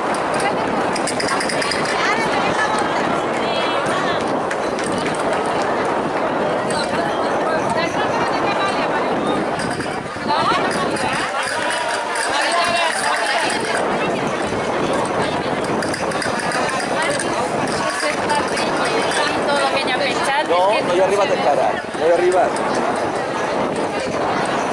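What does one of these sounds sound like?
A crowd of people chatters loudly outdoors.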